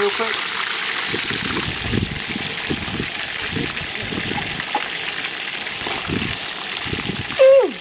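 Oil sizzles and crackles in a hot pan.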